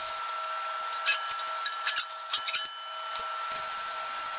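Metal plates clank together.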